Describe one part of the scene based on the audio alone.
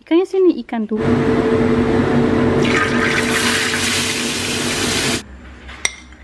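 Fish sizzles loudly in hot oil.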